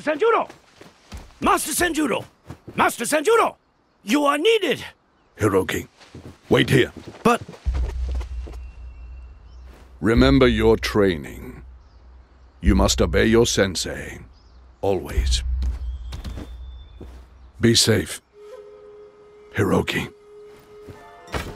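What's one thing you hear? A man speaks slowly and gravely, close by.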